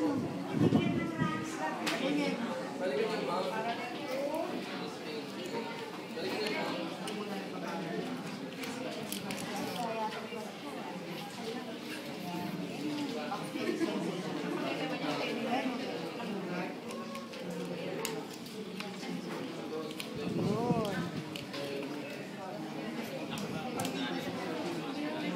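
A crowd of young men and women chatter.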